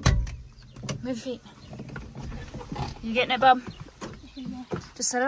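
A young boy talks nearby.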